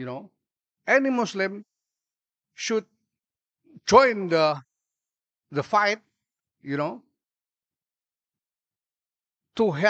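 A middle-aged man speaks slowly and calmly into a microphone, with long pauses.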